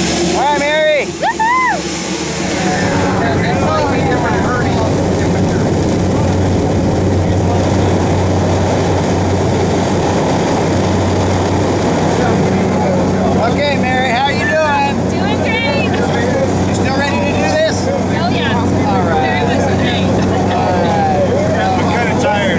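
A small plane's engine drones loudly and steadily.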